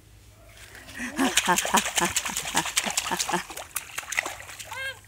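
Water splashes in a small paddling pool.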